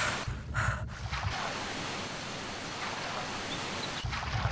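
Water swirls and bubbles underwater.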